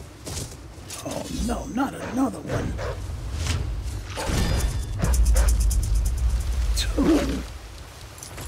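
Wolves snarl and growl close by.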